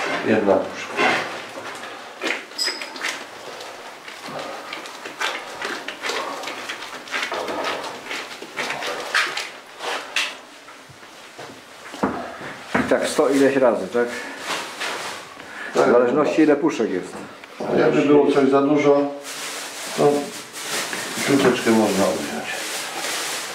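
Minced meat squelches as hands knead and press it.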